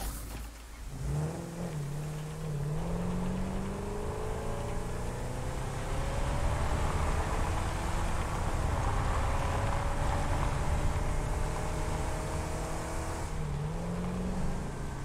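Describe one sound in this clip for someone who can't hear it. A game buggy's engine hums and whines as it drives.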